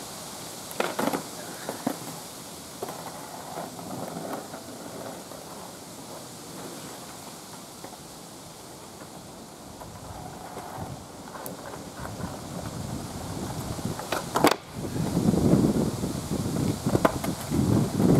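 A skateboard deck clacks sharply on the ground.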